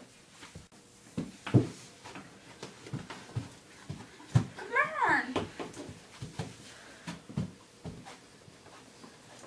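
Footsteps thump on wooden stairs.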